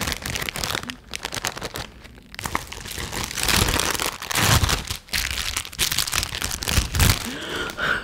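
A plastic bag crinkles and rustles close to a microphone.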